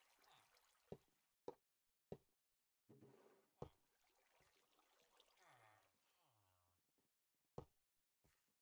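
Blocks are placed with short, soft clicks.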